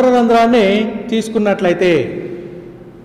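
A man speaks loudly and clearly.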